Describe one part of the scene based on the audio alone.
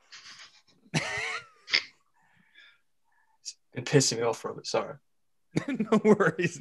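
Young men laugh loudly over an online call.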